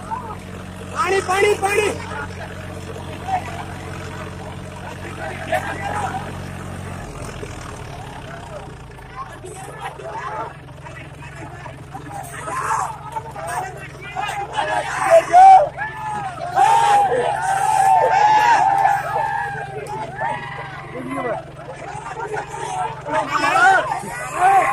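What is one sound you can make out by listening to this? Men shout and cheer excitedly in a crowd close by.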